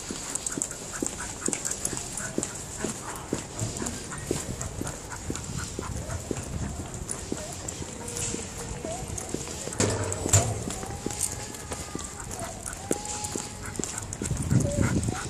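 A chain leash jingles and rattles.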